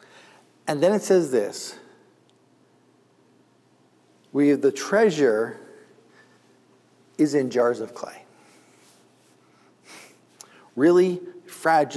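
A middle-aged man speaks calmly and expressively into a close microphone, with pauses.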